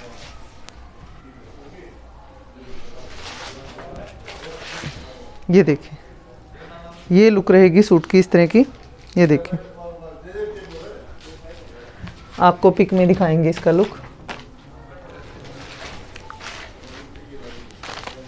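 Fabric rustles as it is handled and spread out.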